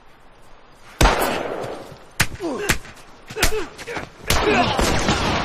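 Heavy punches thud in a scuffle.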